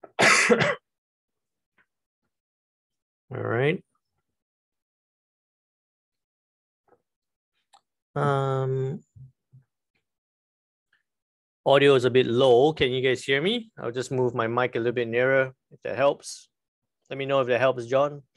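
A man speaks into a close microphone in short bursts with pauses.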